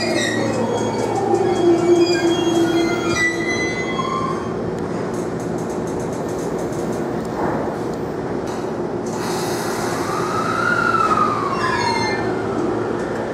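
An electric train motor whines, its pitch gliding up and down.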